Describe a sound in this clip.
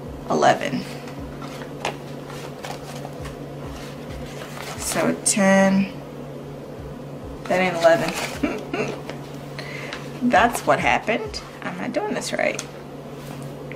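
Paper banknotes rustle and crinkle between hands.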